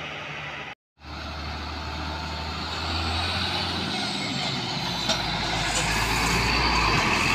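A heavy cement mixer truck drives closer with a deep, growing engine rumble.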